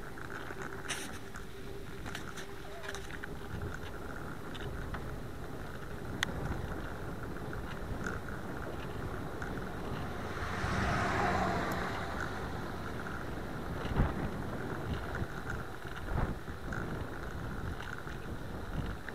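Wind rumbles steadily past a moving bicycle.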